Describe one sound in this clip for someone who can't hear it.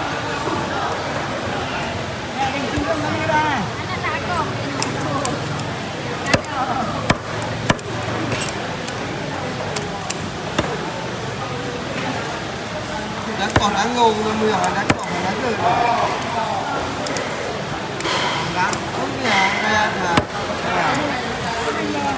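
A knife slices through raw fish.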